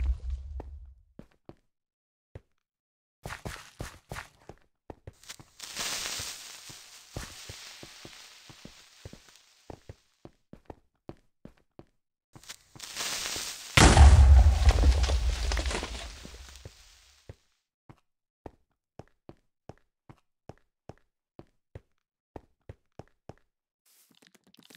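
Footsteps crunch on snow in a quick, steady rhythm.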